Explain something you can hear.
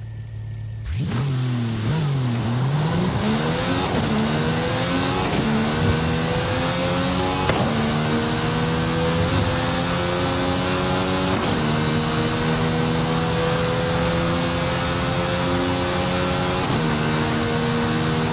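A sports car engine roars to full throttle, revving up again and again through the gears as it speeds away.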